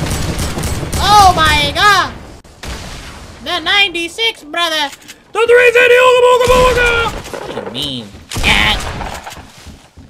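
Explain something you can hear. A young man shouts excitedly into a close microphone.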